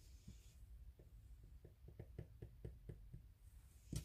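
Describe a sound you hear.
A sponge dabs softly.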